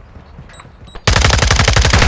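Rapid gunfire crackles in bursts.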